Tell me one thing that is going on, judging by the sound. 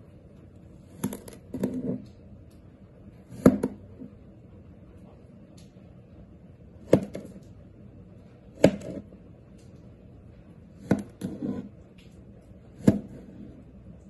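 A knife blade knocks sharply on a table.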